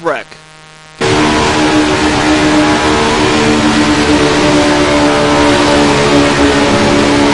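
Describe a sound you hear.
Race car engines roar at a steady high pitch.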